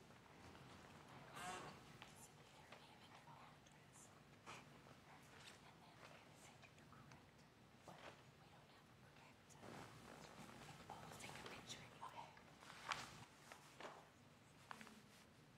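A woman talks quietly in a large room.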